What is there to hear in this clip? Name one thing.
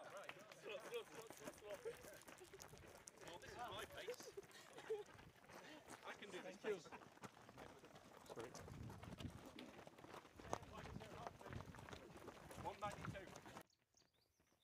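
Many feet jog on a dirt path.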